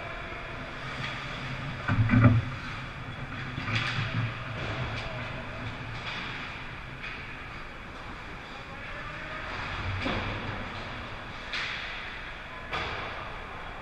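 A hockey puck smacks against sticks and the boards with sharp cracks.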